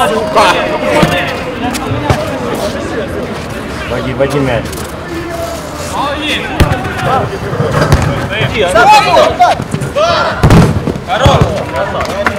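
Men shout and call out to each other outdoors.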